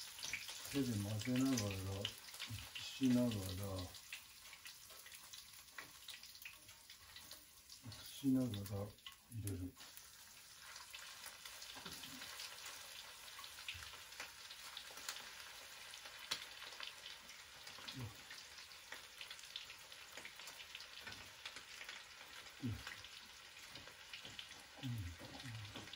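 Utensils clink and scrape against a pan.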